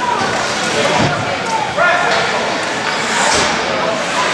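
Hockey sticks clack against the ice.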